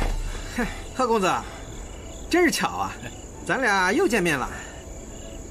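A man speaks cheerfully and greets another man.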